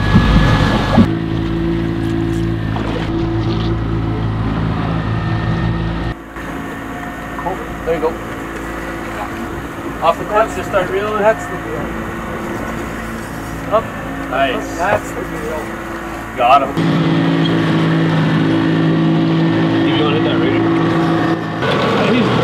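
Boat outboard engines hum steadily.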